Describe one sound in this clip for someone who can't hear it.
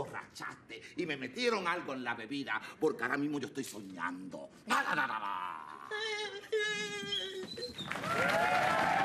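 An older man speaks loudly and with animation.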